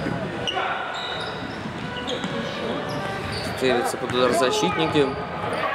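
Sneakers squeak on a hard floor in an echoing indoor hall.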